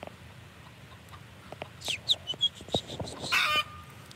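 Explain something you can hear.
A rooster clucks nearby.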